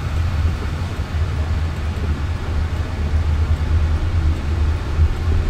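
A car's engine and tyres rumble low and steady from inside the cabin as it drives.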